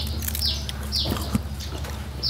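A man crunches loudly on raw fruit close by.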